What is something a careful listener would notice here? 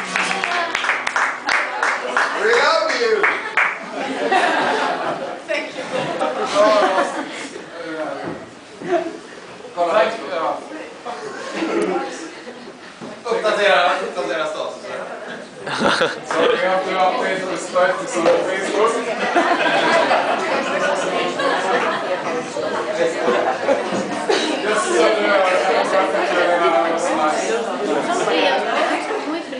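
A small crowd of young adults cheers and chatters in a lively room.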